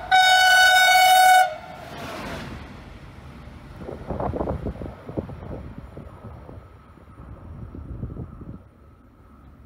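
A diesel train rumbles past on the tracks and fades away.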